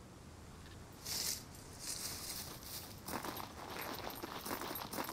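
Footsteps crunch and rustle through dry grass and brush.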